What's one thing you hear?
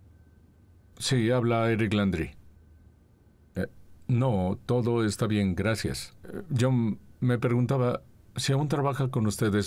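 A man speaks calmly and seriously into a telephone, close by.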